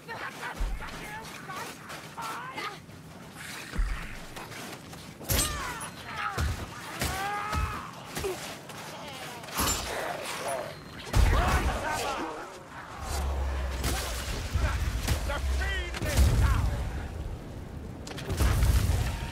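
Weapons clash and thud against creatures in a fight.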